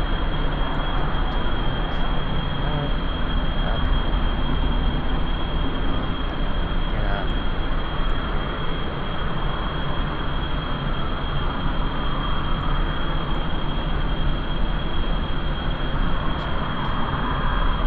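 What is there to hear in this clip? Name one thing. Rocket engines roar steadily.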